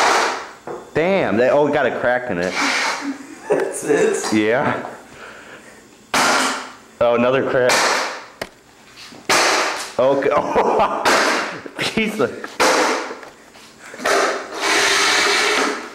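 A shoe stamps hard on a metal box with loud thuds.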